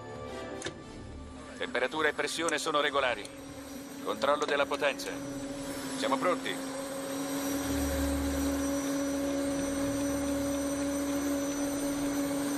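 A helicopter engine whines steadily as it spools up.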